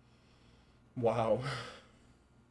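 A young man exclaims briefly close to a microphone.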